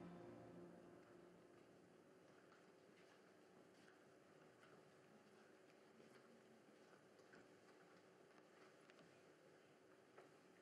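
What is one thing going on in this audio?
Footsteps pad softly across a hard floor.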